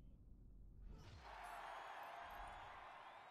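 Small plastic bricks scatter with a bright sparkling burst.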